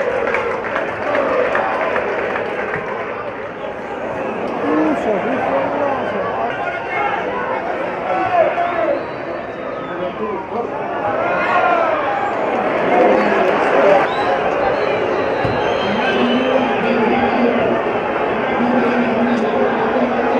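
A large crowd chants and cheers loudly in an open stadium.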